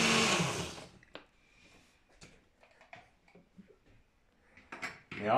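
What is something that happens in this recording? A blender lid clicks and rattles as it is lifted off.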